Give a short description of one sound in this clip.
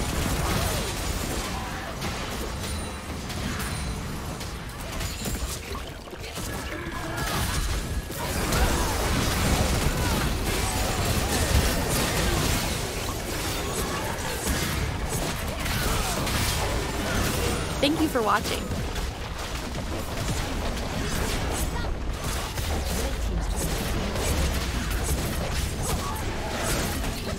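Spell blasts, clashes and explosions from a video game battle ring out busily.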